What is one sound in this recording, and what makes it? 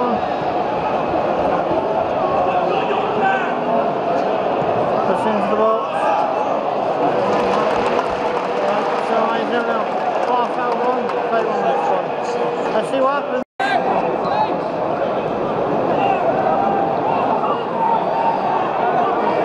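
A large stadium crowd chants and cheers.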